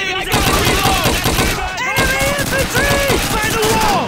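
A submachine gun fires a rapid burst close by.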